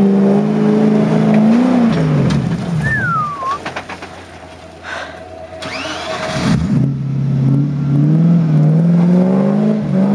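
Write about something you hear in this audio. Chunky tyres churn through thick mud.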